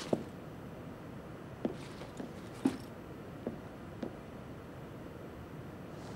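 Footsteps thud softly on a floor.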